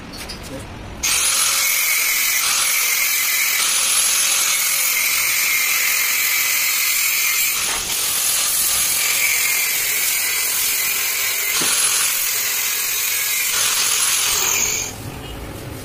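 An angle grinder whines loudly, grinding metal.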